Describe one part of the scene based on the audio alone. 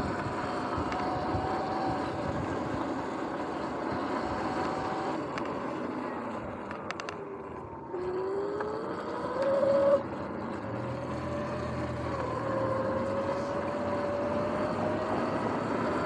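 An electric bike motor whines steadily, rising and falling in pitch with speed.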